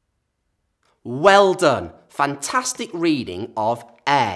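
A young man speaks clearly and with animation, close to a microphone.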